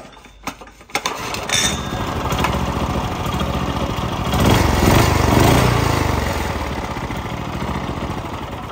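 A small engine starts and runs with a loud, steady rumble.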